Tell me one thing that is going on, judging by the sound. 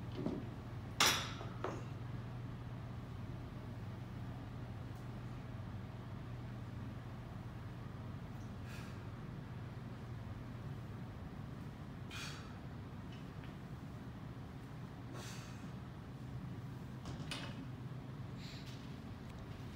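Weight plates knock against the floor a few times.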